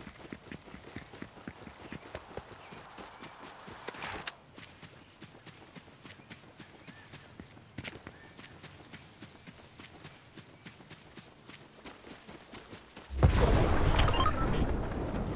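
Quick footsteps run steadily across the ground.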